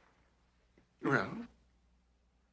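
A young man asks a short question in a calm voice.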